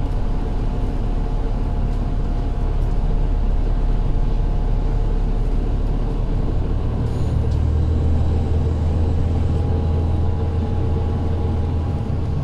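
A bus engine rumbles low and steady from inside the bus.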